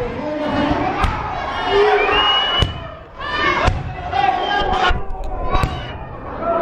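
Sharp thuds of bodies slamming onto a wrestling mat ring out.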